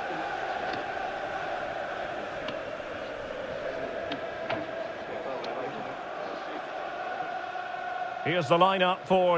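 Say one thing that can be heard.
A large stadium crowd murmurs and cheers in the background.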